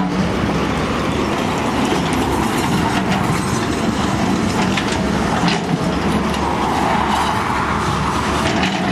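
A diesel engine of an excavator rumbles steadily nearby.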